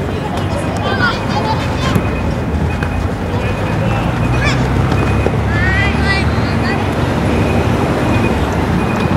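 Children shout and call out across an open field outdoors.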